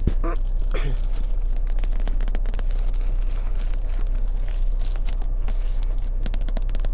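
Book pages rustle and flip.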